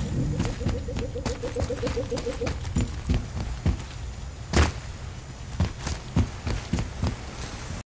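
Heavy footsteps thud quickly on hard ground.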